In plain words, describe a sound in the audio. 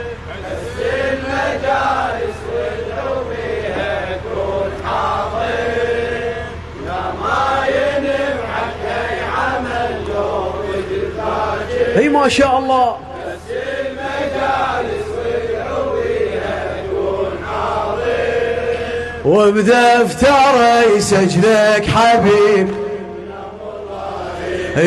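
A large group of men chant together loudly outdoors.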